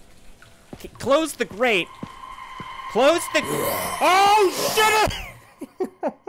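A young man screams in fright close to a microphone.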